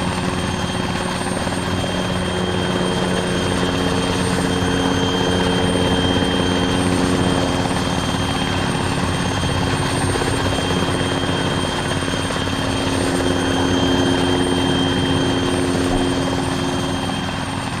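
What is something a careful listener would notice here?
A helicopter's rotor thrums steadily.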